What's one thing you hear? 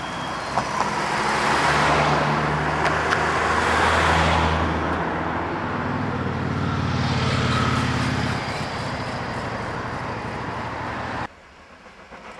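A steam locomotive chuffs loudly as it pulls away.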